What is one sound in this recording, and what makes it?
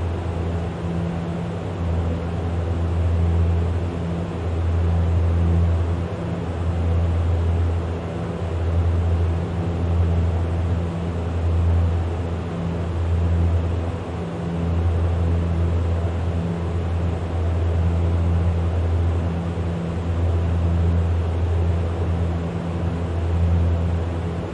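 Propeller engines drone steadily with a low, throbbing hum.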